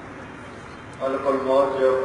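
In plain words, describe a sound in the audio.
A man speaks loudly through a microphone, heard outdoors.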